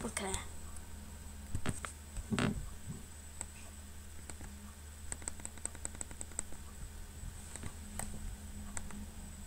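A young boy speaks quietly and close to a microphone.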